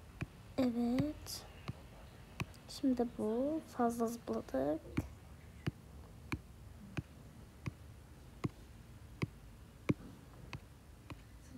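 A cartoon cat bounces with short springy boings at a steady pace.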